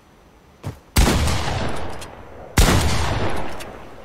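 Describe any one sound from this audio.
A shotgun fires two loud blasts.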